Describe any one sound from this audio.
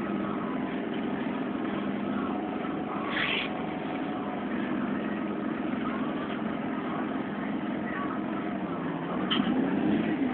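A bus engine hums steadily from inside the vehicle.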